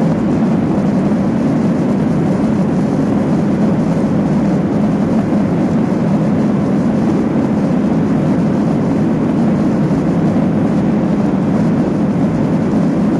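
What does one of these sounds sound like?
Landing gear wheels rumble over a runway.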